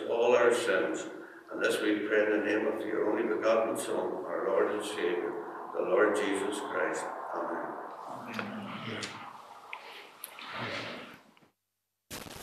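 A man speaks calmly into a microphone in a large echoing room.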